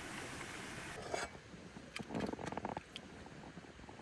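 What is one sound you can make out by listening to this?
Two metal mugs clink together.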